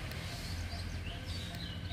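A squirrel gnaws at a piece of fruit.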